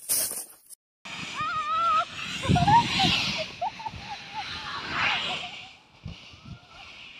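A snow tube slides and hisses down a snowy slope.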